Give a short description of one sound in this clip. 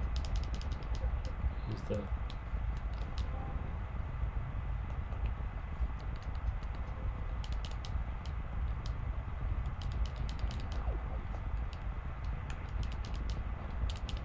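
Blaster shots fire in rapid bursts from a video game.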